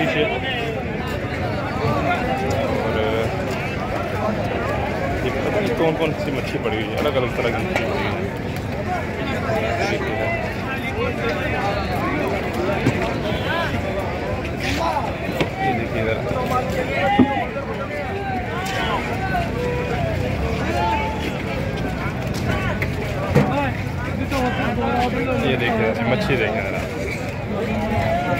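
A crowd of men chatter loudly all around outdoors.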